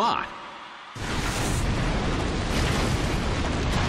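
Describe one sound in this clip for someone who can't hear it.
Rocks tumble and crash with a rumbling roar.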